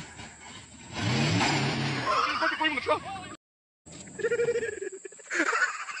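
A pickup truck's engine revs and roars.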